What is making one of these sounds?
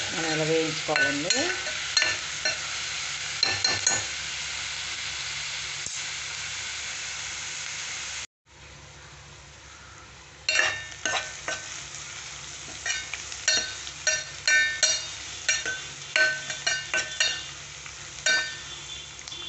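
A metal spoon scrapes and clinks against a metal pot while stirring.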